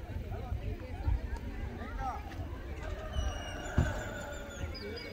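Young people shout and call out to each other in the distance.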